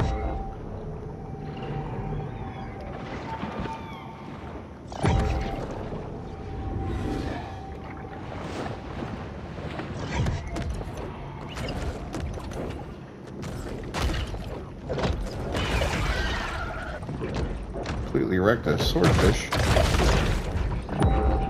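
Water rushes and rumbles steadily underwater.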